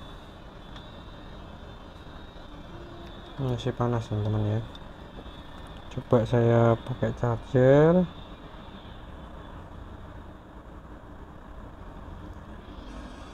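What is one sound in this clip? Small plastic phone parts click and tap softly as they are handled.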